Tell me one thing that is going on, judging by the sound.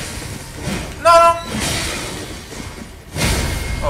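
Metal weapons clash and ring.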